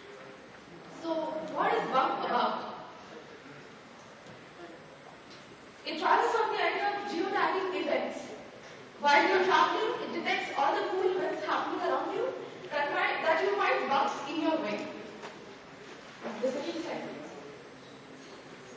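A young man speaks into a microphone, heard through loudspeakers in a large echoing hall.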